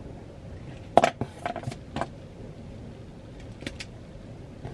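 Pens clatter and click as they are put down and picked up.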